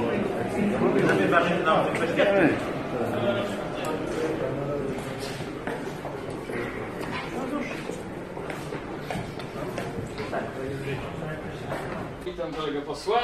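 A crowd of people chatters in an echoing hall.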